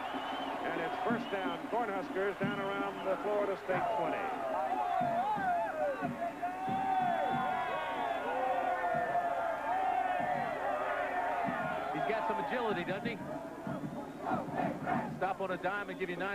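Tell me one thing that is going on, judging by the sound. A huge crowd sings and chants loudly in an open stadium.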